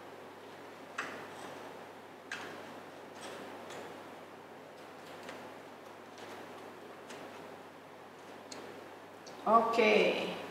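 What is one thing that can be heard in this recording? Leaves and stems rustle and click softly as they are handled.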